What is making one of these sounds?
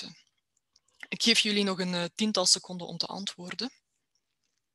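A young woman speaks calmly through a microphone on an online call.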